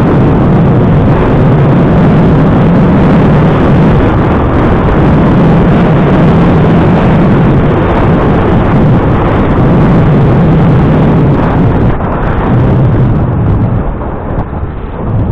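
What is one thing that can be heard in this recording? A motor hums low and steady as the vehicle drives along.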